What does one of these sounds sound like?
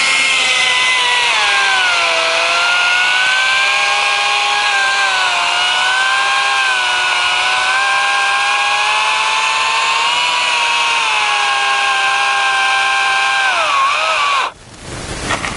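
A chainsaw runs close by with a steady, high buzzing whine, then cuts off.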